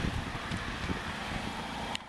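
A car engine idles nearby with a low, steady hum.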